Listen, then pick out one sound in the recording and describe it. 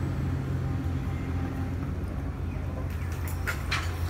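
Metal and rubble crash and scrape as an excavator tears down a building.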